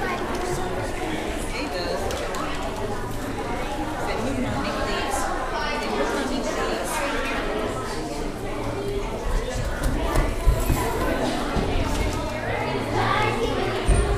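Children chatter quietly among an audience.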